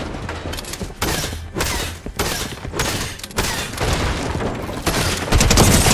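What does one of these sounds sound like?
Building pieces snap into place with quick bursts of thuds and whooshes.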